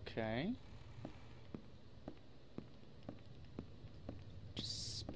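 Footsteps tap steadily across a floor.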